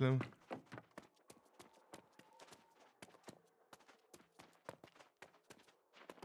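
Footsteps thud softly on wooden stairs and floorboards.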